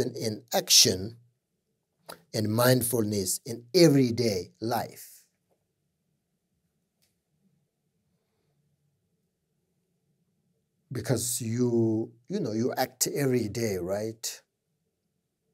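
A middle-aged man speaks calmly and thoughtfully into a close microphone, pausing at length between phrases.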